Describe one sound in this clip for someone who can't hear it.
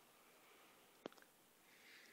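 A small button clicks once on a wristwatch.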